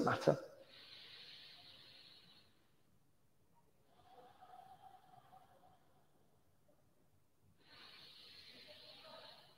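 A man breathes in and out slowly and deeply nearby.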